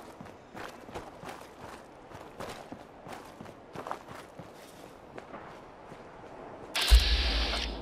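Footsteps crunch steadily on rubble and gravel.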